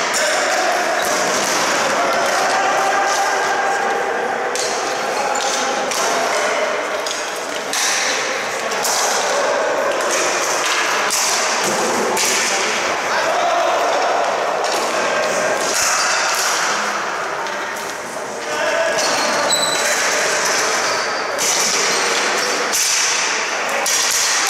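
Lacrosse sticks clack together.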